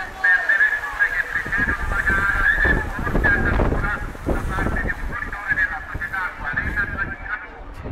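A large pack of bicycles whirs past close by.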